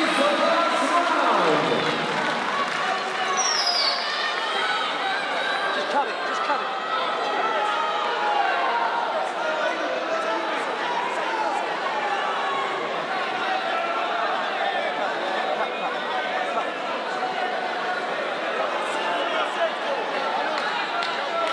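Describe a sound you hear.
A large crowd chatters and calls out in a big echoing hall.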